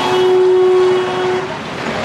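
Scooter engines buzz by.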